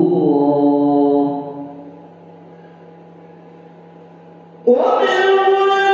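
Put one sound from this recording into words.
A man chants a long, held melodic recitation through a loudspeaker in a reverberant room.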